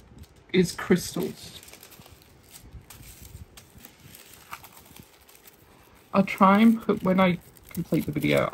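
Plastic packaging crinkles softly as hands handle it.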